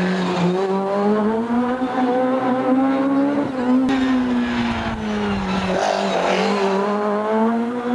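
A rally car engine revs hard and roars, rising and falling in pitch.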